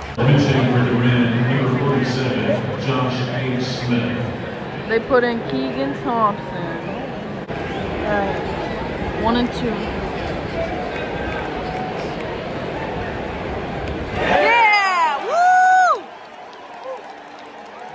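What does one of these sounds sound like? A large crowd murmurs and chatters in an open stadium.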